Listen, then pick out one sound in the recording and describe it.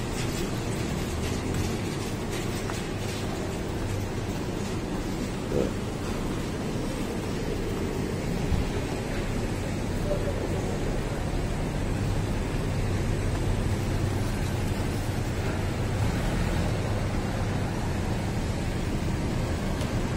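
A street hums with traffic and people walking outdoors.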